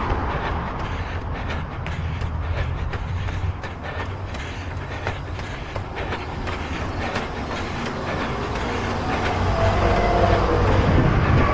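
Footsteps tap steadily on a paved pavement.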